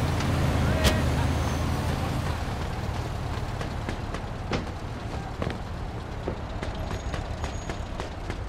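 Footsteps run quickly over a hard surface.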